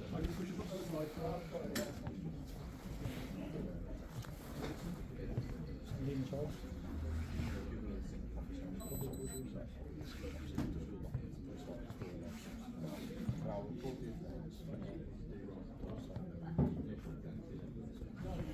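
Clothing rustles close by.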